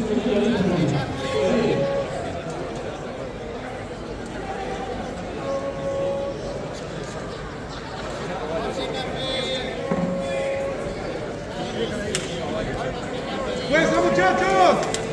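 A group of men talk and call out, heard through loudspeakers in a large echoing space.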